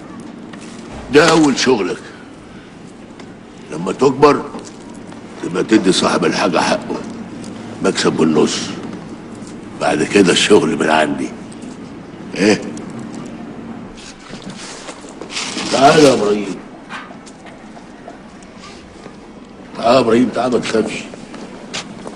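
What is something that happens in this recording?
A younger man speaks in a strained voice.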